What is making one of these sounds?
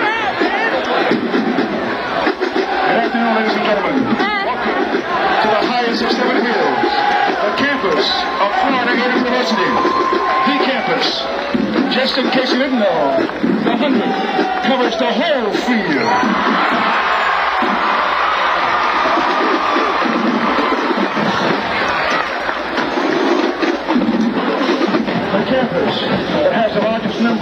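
A marching band plays loudly outdoors in a large stadium.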